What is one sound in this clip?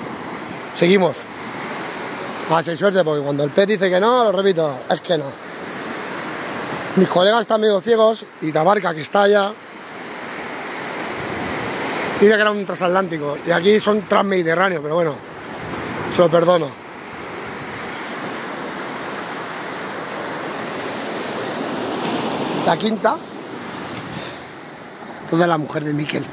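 Waves wash and break steadily on a shore.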